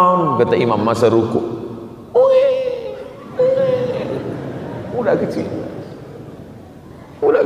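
A man speaks with animation into a microphone in an echoing hall.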